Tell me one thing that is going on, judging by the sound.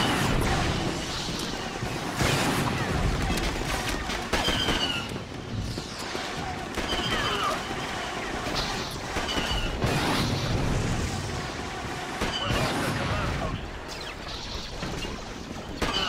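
Blaster guns fire in quick bursts of zapping shots.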